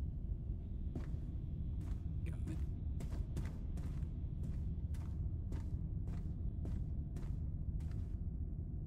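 Footsteps creak and tap on a wooden floor.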